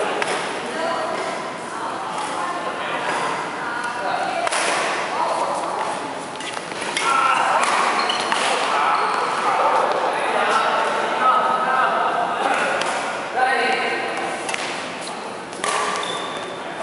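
Young men talk and call out across the hall.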